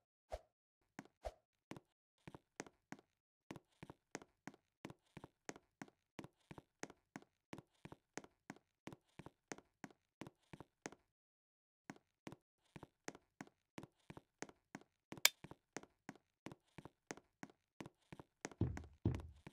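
Quick light footsteps patter steadily on a hard floor.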